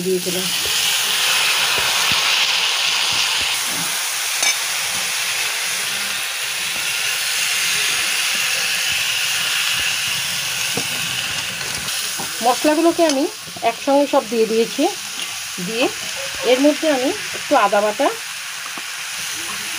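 A metal spatula stirs rice in a metal wok.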